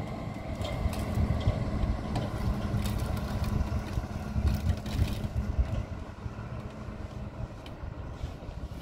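A truck engine rumbles as the truck drives past in the distance.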